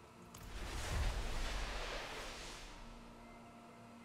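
A magical whoosh swells up and fades away.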